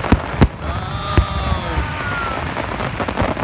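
Rockets whistle as they rise.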